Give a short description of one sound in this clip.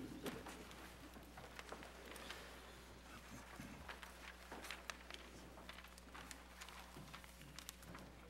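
Pages of books rustle and turn.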